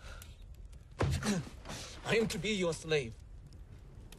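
A man speaks pleadingly in a low voice.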